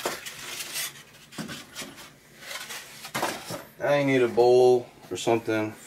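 Cardboard trays scrape and knock against a plastic tub.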